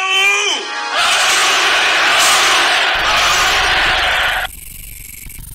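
Many men roar and clash in a fierce battle.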